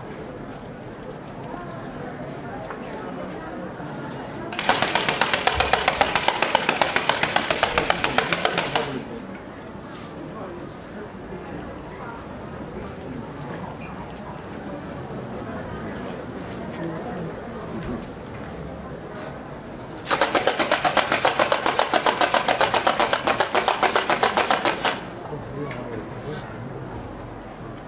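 A crowd murmurs quietly outdoors.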